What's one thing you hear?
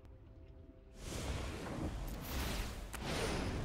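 A magical shimmering whoosh sounds as a card is played.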